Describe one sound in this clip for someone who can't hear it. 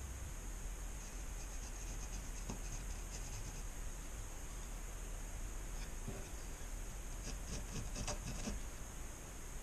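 A pencil scratches across wood in short strokes.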